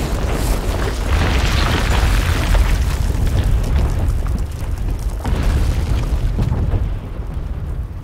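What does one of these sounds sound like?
Rocks crash and tumble down with a deep rumble.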